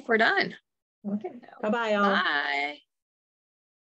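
A middle-aged woman speaks over an online call.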